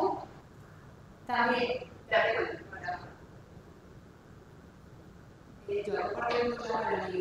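A woman speaks from across a room, pausing between phrases.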